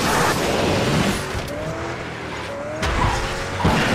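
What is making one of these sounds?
Metal scrapes and grinds against a barrier.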